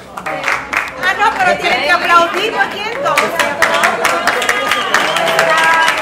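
A crowd claps hands in a quick rhythm.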